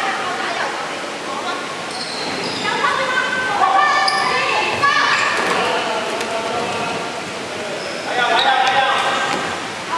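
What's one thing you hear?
Sneakers squeak on the hard floor.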